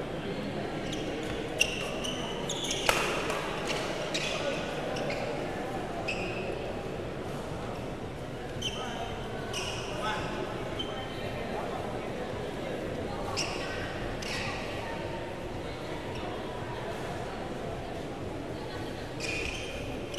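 A crowd murmurs steadily in an echoing hall.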